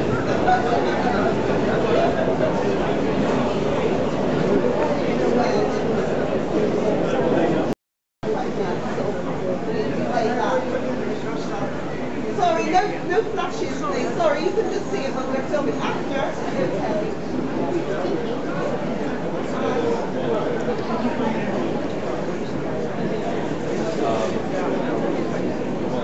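A crowd of people chatter all around, close by.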